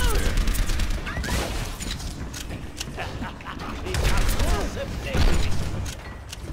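Gunshots and blasts ring out in a fast fight.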